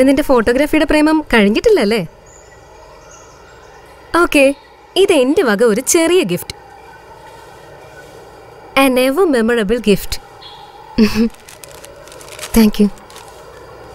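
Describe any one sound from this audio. A young woman's voice is heard.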